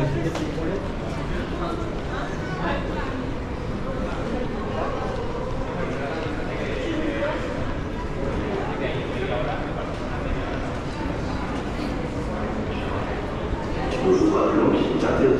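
Voices of a crowd murmur in a large echoing hall.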